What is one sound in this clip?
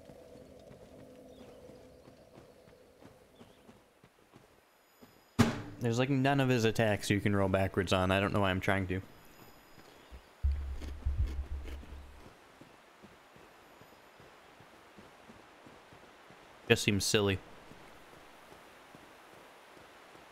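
Footsteps in armour scuff and clank along a stone path.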